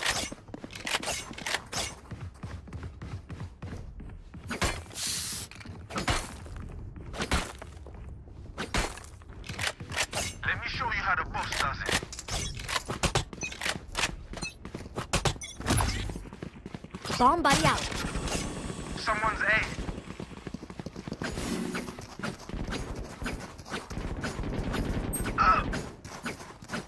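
Quick footsteps patter on hard floors.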